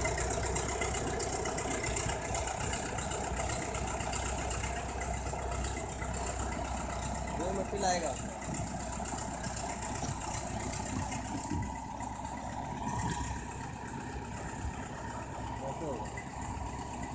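A bulldozer's metal tracks clank and squeak as it moves.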